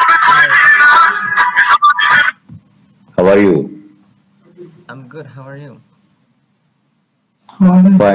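A young man talks over an online video call.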